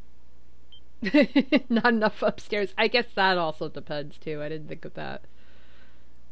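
A young woman laughs into a microphone.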